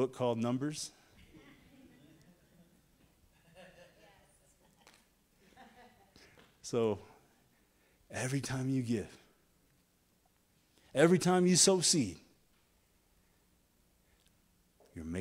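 A man preaches through a microphone in bursts, his voice echoing in a large hall.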